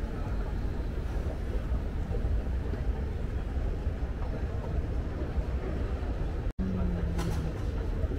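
An escalator hums steadily as it moves.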